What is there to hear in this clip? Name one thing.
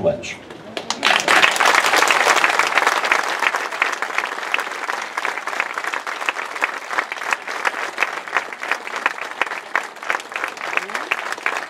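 A crowd applauds, loud at first and then thinning out.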